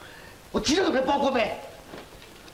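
A man speaks forcefully, close by.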